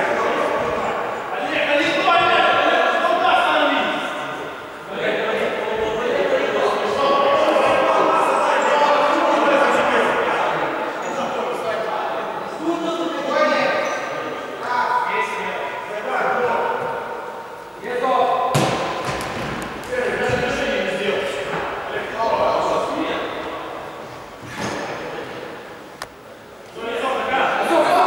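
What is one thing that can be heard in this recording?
Men call out to each other in a large echoing hall.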